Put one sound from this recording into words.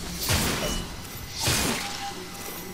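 A sword slashes and strikes flesh.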